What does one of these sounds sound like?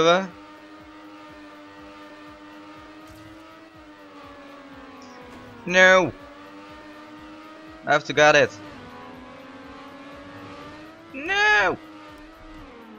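A racing car engine hums steadily at high speed.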